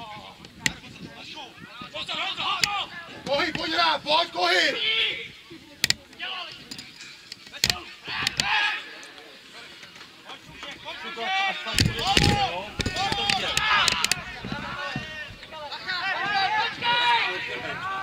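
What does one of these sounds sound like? Men shout to each other outdoors during a football match.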